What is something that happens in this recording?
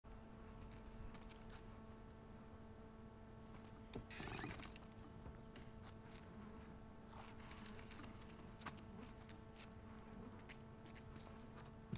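Footsteps tread softly across a hard floor.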